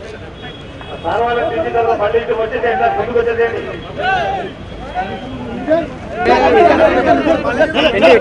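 Men shout and cheer loudly close by.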